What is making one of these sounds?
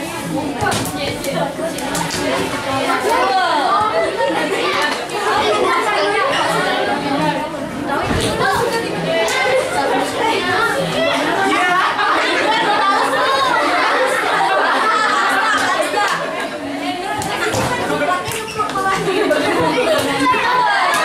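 A crowd of children and teenagers chatter and call out nearby in an echoing room.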